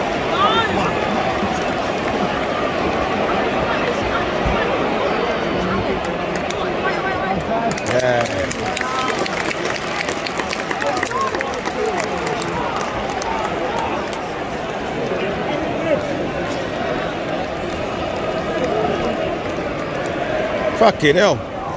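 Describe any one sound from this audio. A large stadium crowd chants and cheers loudly all around.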